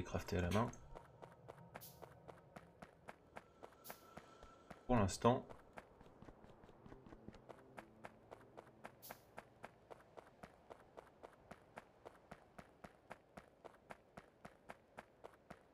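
Footsteps tread quickly and evenly on dry ground.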